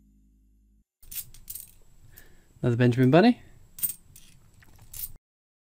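Metal coins clink against each other as they are flicked through by hand.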